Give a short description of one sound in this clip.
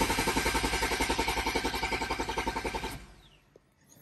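A car engine idles with a rough, rapid pulsing, then cuts off.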